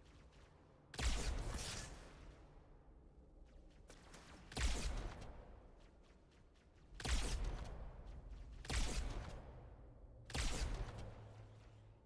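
A heavier energy rifle fires single loud, sharp shots that ring out.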